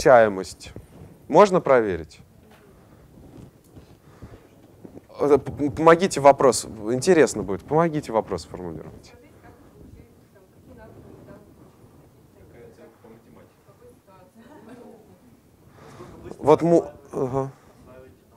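A young man speaks with animation to a room, slightly echoing.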